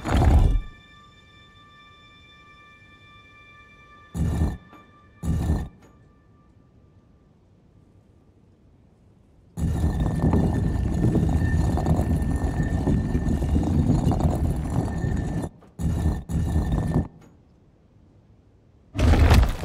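A heavy stone dial grinds and scrapes as it turns, in short bursts.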